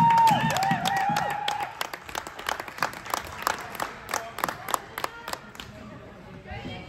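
Spectators clap rapidly in a large echoing hall.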